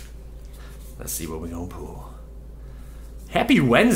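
Playing cards slide and tap against each other.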